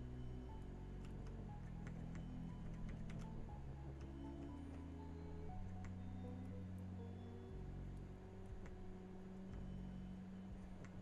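Short soft clicks sound as a game piece moves step by step.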